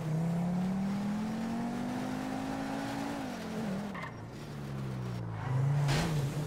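A car engine hums and revs, rising and falling in pitch as the car drives.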